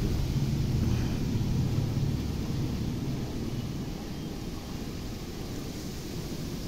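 Wind blows in gusts outdoors, rustling palm fronds.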